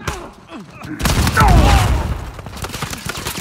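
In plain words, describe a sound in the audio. A burst of flames roars loudly.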